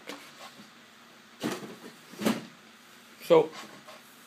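A chair creaks and thumps as a man gets up.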